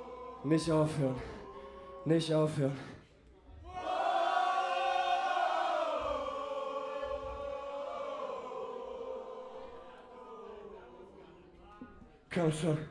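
A man shouts loudly into a microphone.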